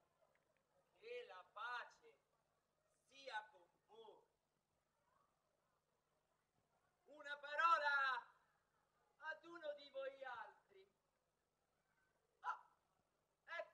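An older man speaks dramatically on a stage, heard through loudspeakers.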